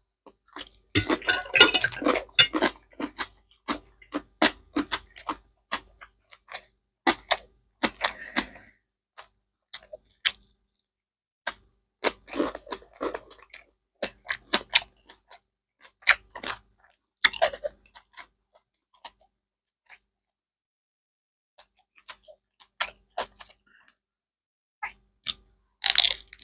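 Crispy spring rolls crunch loudly as they are bitten.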